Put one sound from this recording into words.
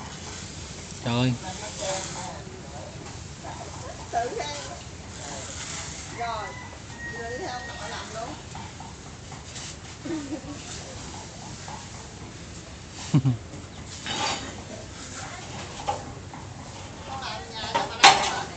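A young child babbles and calls out nearby.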